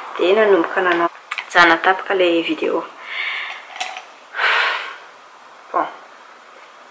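A young woman talks calmly and close to a microphone.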